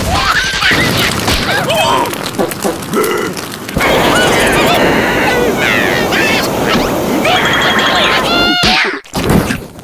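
A small flame hisses and crackles.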